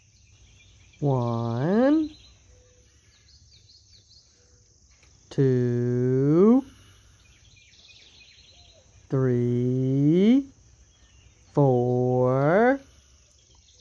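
A young girl voices short drawn-out sounds, one at a time.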